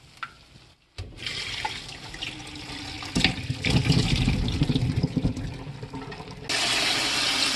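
Water pours through a metal strainer and splashes.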